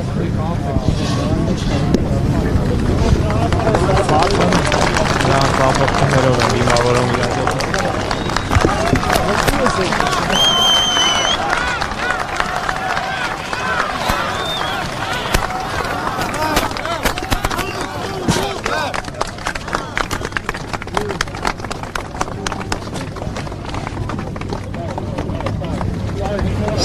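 A large crowd of men talks and shouts outdoors.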